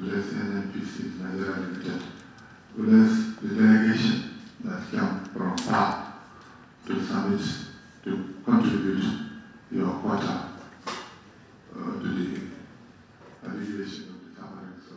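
An older man speaks steadily into a microphone, in short phrases with pauses.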